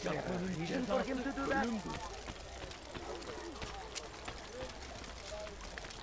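Footsteps run quickly on stone.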